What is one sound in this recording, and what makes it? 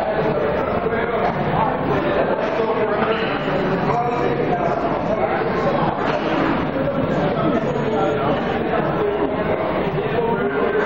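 A man nearby shouts encouragement.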